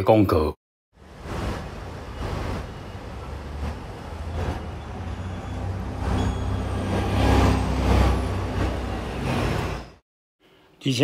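Traffic rumbles steadily on a street outdoors.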